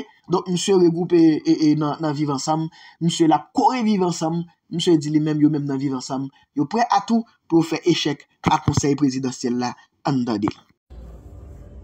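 A man speaks steadily, heard through a microphone.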